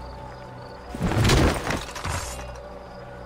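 A short scuffle ends with a heavy blow.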